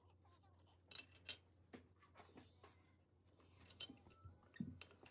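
Chopsticks click softly against a plate.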